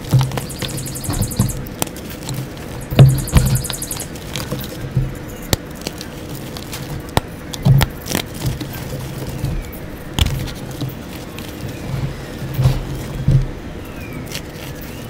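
Hands pat and rub soft treats in powder with dull thuds.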